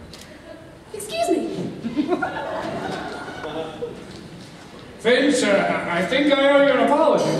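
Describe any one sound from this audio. A man speaks loudly with animation in a large echoing hall.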